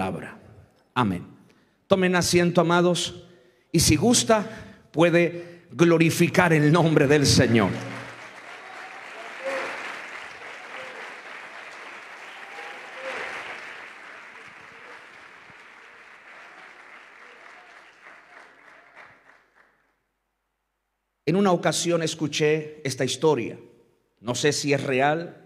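A middle-aged man speaks with animation through a microphone, his voice amplified and ringing in a large hall.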